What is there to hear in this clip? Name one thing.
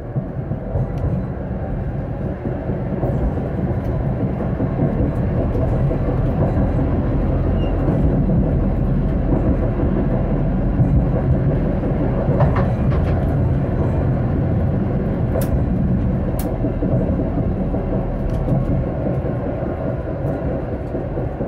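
Tram wheels clack now and then over rail joints.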